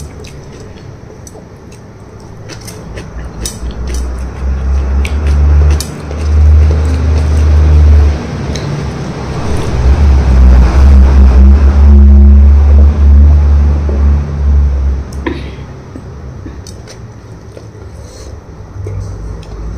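Fingers squish and scrape food on a metal plate close by.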